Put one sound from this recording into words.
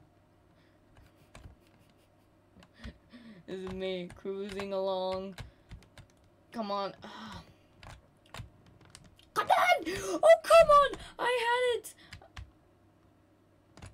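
Cartoon game sound effects blip and chime.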